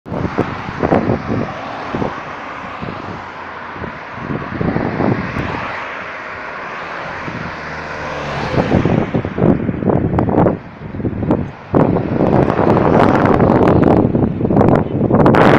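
Cars and trucks drive past close by, their engines and tyres rushing on the road.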